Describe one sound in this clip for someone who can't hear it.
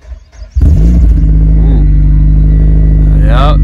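A car engine idles with a loud, deep exhaust rumble.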